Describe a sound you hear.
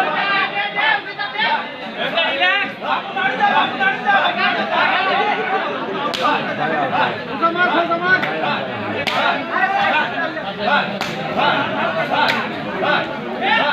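A young man chants rapidly and without pause, close by.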